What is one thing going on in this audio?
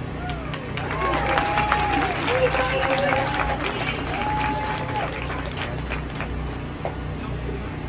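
A marching band plays brass notes in the distance.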